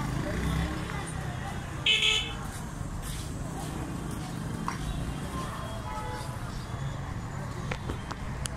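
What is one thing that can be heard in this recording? Street noise hums steadily outdoors.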